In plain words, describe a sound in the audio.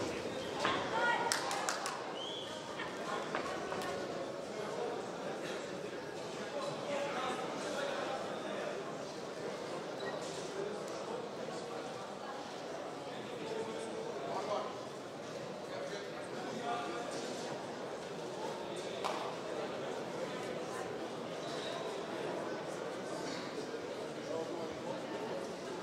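A crowd murmurs and shouts in an echoing hall.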